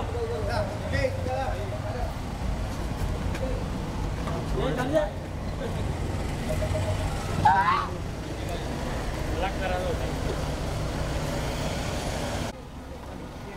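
A car engine idles close by.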